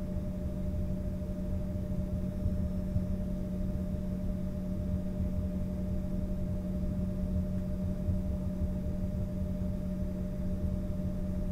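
An aircraft rumbles as it rolls along a runway.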